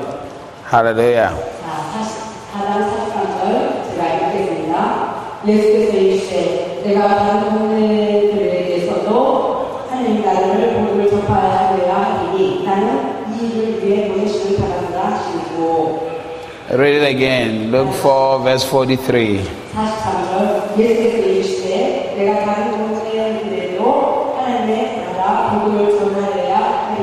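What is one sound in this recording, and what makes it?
A man sings with feeling through a microphone.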